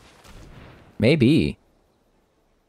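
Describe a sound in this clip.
A magical spell effect swooshes and rings out.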